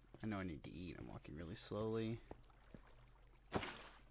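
Water splashes as a bucket is emptied.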